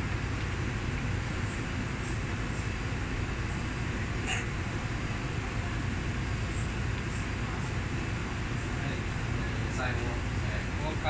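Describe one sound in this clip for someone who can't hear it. A subway train rumbles steadily.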